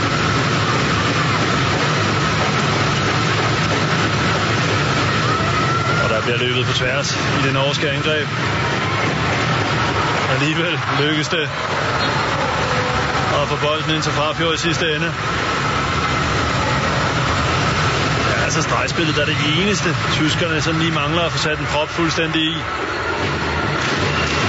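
A large crowd cheers and roars steadily in an echoing hall.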